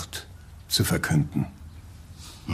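An elderly man speaks sharply, close by.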